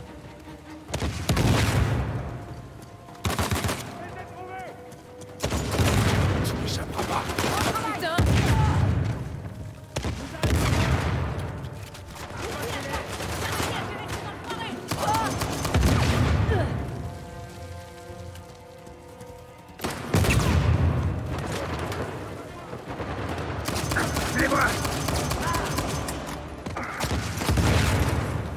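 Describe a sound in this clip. Gunshots crack loudly again and again.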